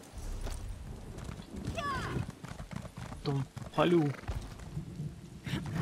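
A horse's hooves clop on wooden boards.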